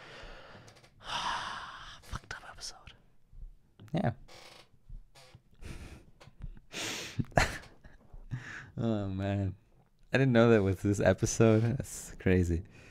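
A second young man chuckles softly near a microphone.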